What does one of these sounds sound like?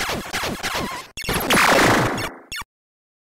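Retro arcade game sound effects swoop downward in quick succession.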